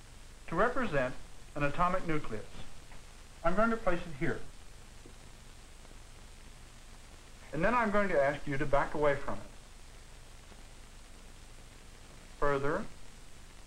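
A man speaks calmly and clearly, close by, with pauses between phrases.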